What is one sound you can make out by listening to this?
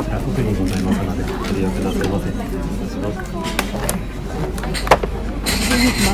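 A paper menu rustles and flaps.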